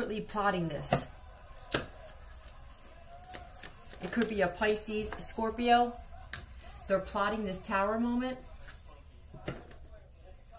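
A card is set down with a light tap on a table.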